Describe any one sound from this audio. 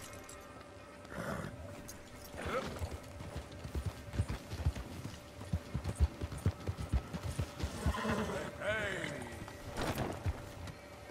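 Hooves thud on a dirt track as a horse gallops.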